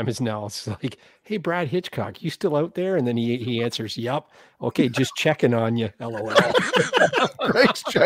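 A man laughs heartily over an online call.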